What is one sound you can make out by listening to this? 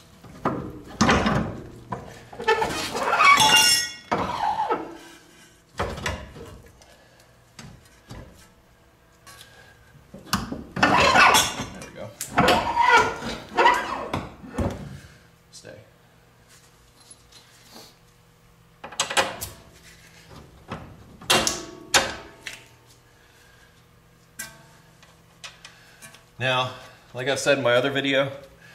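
Metal car parts clunk and clink as they are worked loose by hand.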